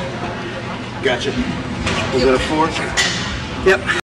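A man speaks breathlessly up close.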